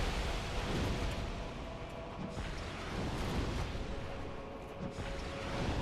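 Fireballs whoosh and burst.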